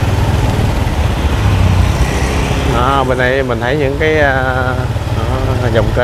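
A motor scooter rides past close by.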